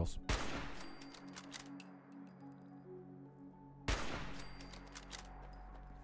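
A rifle fires loud shots that echo away.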